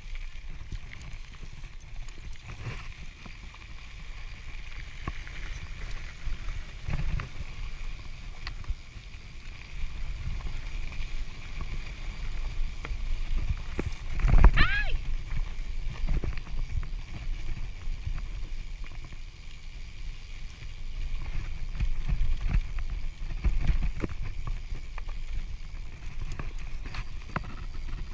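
Bicycle tyres rumble and crunch over a bumpy dirt track.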